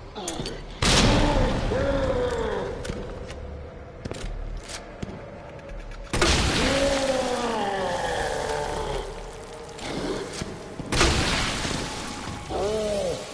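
A monster lets out deep, drawn-out roars.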